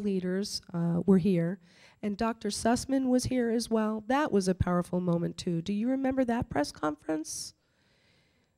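A middle-aged woman speaks with animation into a microphone.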